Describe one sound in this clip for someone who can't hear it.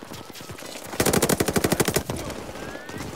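A submachine gun fires a rapid burst of shots.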